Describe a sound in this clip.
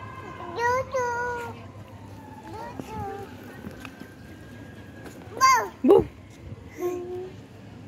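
A little girl giggles and squeals close by.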